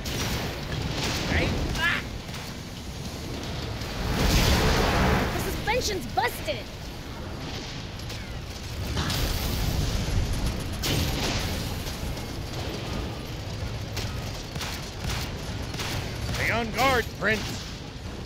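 Explosions boom loudly now and then.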